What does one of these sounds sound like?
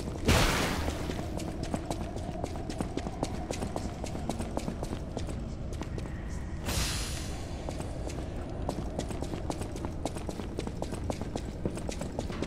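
Footsteps splash steadily through shallow water.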